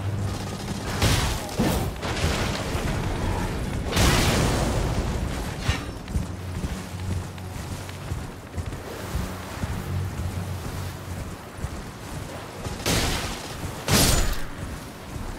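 Sharp sword strikes clang and whoosh in short bursts.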